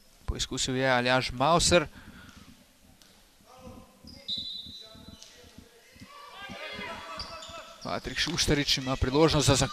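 Young boys shout loudly in an echoing hall.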